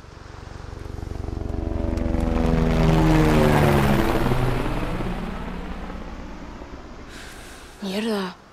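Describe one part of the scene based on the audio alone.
A helicopter roars past close by, its engine dropping in pitch and fading away.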